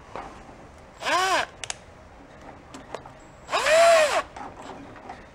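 A cordless power ratchet whirs in short bursts.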